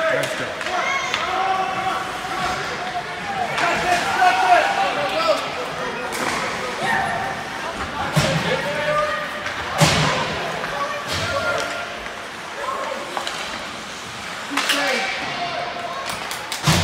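A crowd of spectators chatters and calls out in a large echoing rink.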